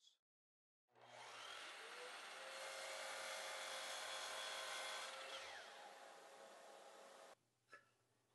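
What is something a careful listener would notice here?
A power saw motor whirs steadily, then winds down.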